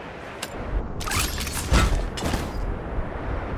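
A glider snaps open with a loud whoosh.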